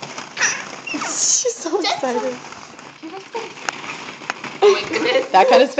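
Plastic balls rustle and clatter as toddlers move in them.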